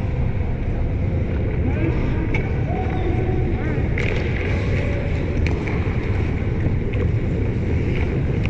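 Skate blades scrape across ice in a large echoing arena.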